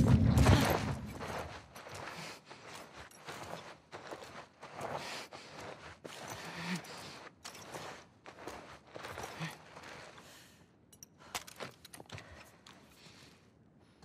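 A person crawls across a gritty floor with soft scuffing.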